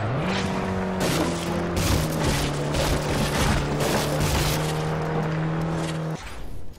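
Wooden posts and fences crash and splinter against a car.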